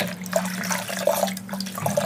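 Water pours and splashes into a tub of water.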